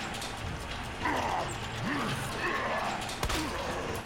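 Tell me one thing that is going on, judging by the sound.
A zombie groans and snarls close by.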